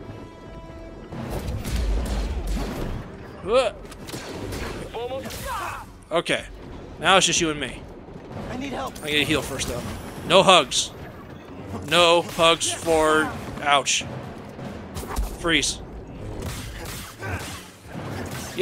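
A lightsaber swooshes through the air.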